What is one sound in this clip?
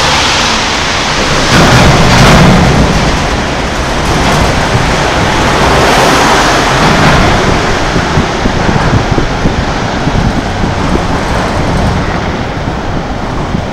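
Wind blusters loudly across the microphone outdoors.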